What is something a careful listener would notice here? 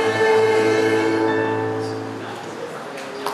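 A choir sings a held chord in a room that echoes, then the last note fades away.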